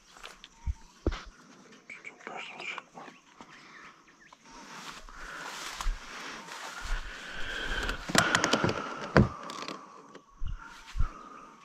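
Dry grass rustles and crackles close by.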